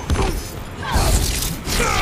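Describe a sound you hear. Electricity crackles and zaps loudly.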